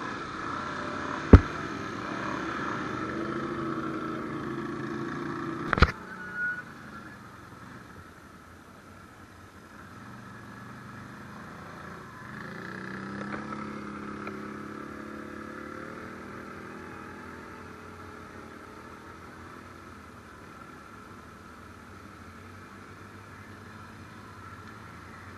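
Other off-road vehicle engines hum and idle nearby.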